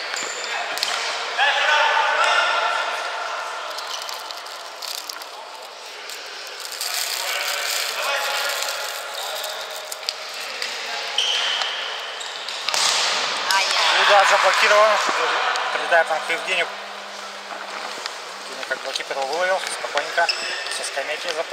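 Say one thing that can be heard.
Men shout and call out in a large echoing hall.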